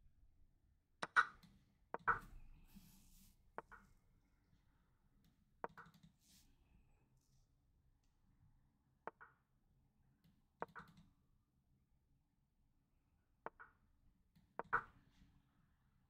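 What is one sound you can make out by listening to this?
Chess moves click sharply, one at a time, every few seconds.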